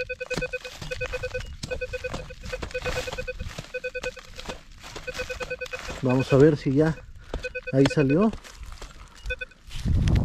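A hoe scrapes and chops into soil.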